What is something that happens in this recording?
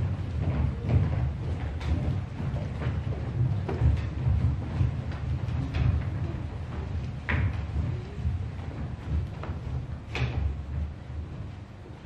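Children's feet shuffle and patter across a stage.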